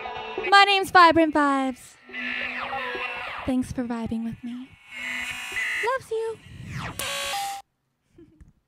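A young woman sings into a microphone.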